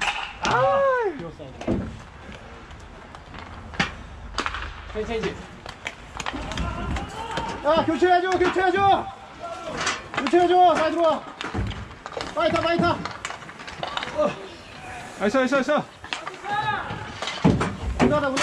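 Men shout loudly nearby, calling out to the players.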